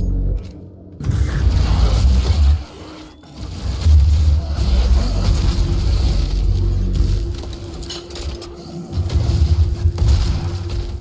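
A heavy gun fires in rapid, booming bursts.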